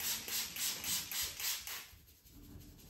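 A spray bottle mists water in quick repeated bursts.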